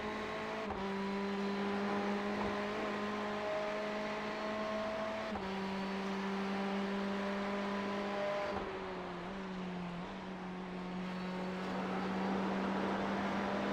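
Tyres hiss on a wet track.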